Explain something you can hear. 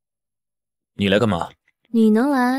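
A young man asks a question sharply, close by.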